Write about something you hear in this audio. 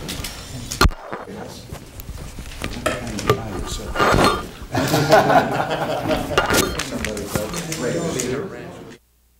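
Several men chat casually nearby.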